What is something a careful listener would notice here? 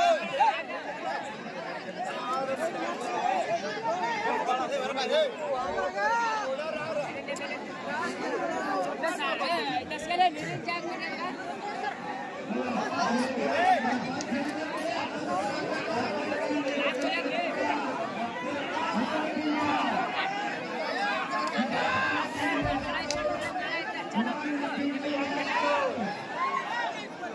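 A large crowd of men chatters and calls out outdoors.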